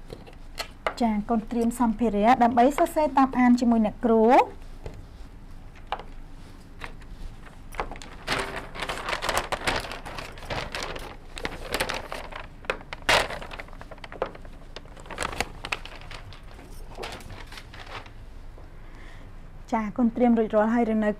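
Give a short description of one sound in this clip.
A young woman speaks clearly and calmly through a microphone.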